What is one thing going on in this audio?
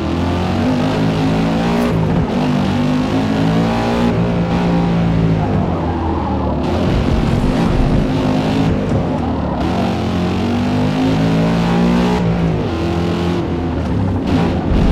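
A racing car engine in a driving game revs hard as it accelerates and shifts gears.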